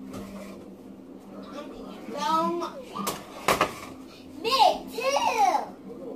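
A metal pot clanks against the stove.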